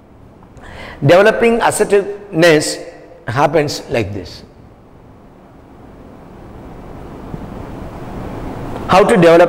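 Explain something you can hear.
A middle-aged man speaks calmly, as if lecturing.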